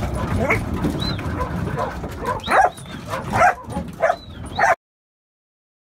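Sheep bleat loudly nearby.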